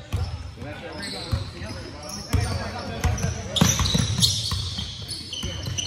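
Young players call out and chatter in the echoing hall.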